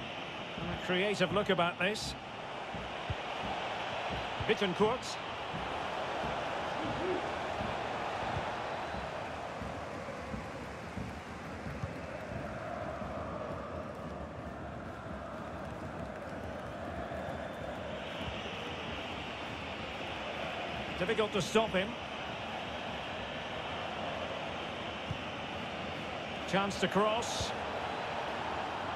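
A stadium crowd roars and chants steadily.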